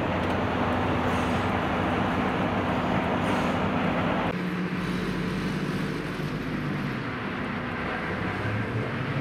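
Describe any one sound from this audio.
A train engine hums steadily as the train moves along.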